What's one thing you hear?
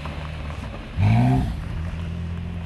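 A sports car engine revs sharply once.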